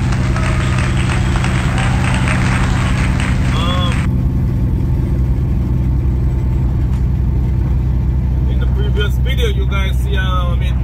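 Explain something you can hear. A truck engine drones steadily with a low hum.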